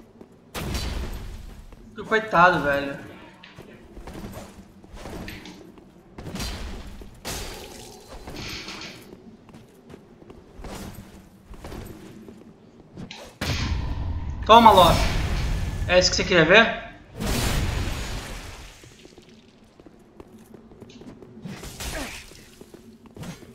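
Heavy blades swing and clash in quick bursts.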